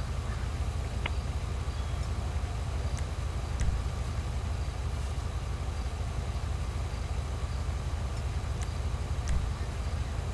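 Items knock and rustle inside a car trunk.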